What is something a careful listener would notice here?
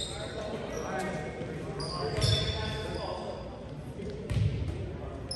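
A volleyball thuds as it is hit.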